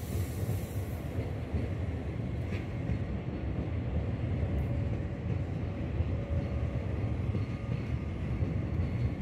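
A high-speed train rolls past with a low, steady rumble.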